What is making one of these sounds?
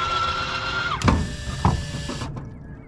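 A metal motor mount clunks shut.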